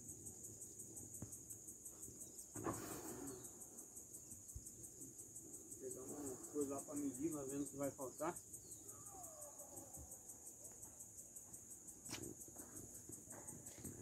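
A cricket chirps in a fast, steady, high trill close by.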